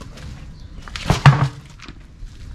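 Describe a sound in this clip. A heavy tyre thumps onto the ground.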